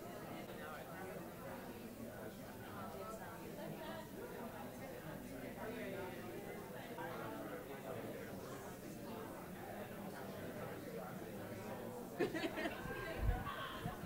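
Many voices chatter and murmur in a room.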